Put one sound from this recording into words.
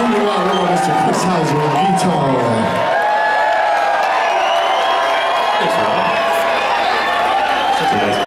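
A live band plays loudly in a large hall.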